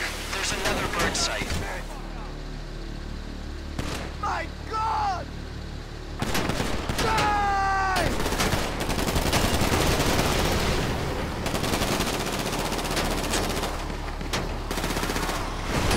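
Tyres crunch over gravel and dirt.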